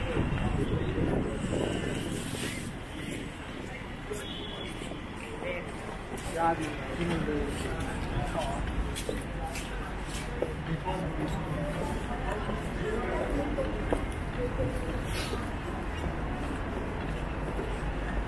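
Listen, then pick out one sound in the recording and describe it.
Heels click on pavement as people walk.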